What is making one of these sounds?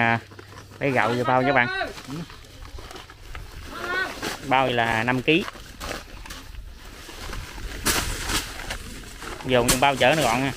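A plastic sack rustles as it is handled.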